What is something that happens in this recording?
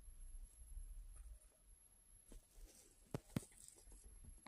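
A small plastic toy clicks as it is set down on a hard base.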